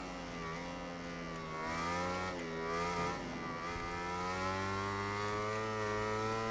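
A motorcycle engine roars steadily, dipping in pitch around a bend and then climbing as it speeds up.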